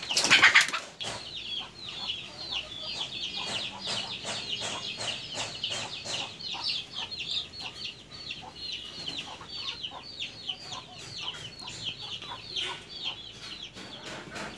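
Many chickens cheep and chirp rapidly nearby.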